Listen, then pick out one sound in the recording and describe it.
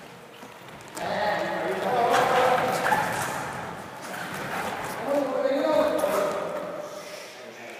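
Young people shout together in rhythm, echoing in a large hall.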